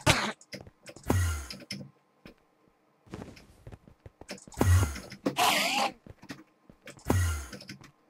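A sword swishes and strikes a creature.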